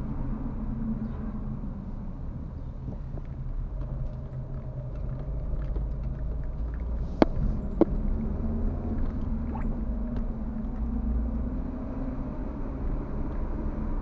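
Tyres rumble over an uneven road.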